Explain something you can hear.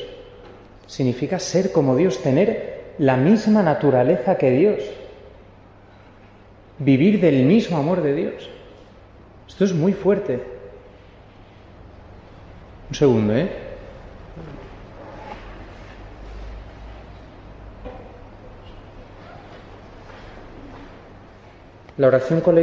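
A man chants a prayer in a slow singing voice, echoing in a large hall.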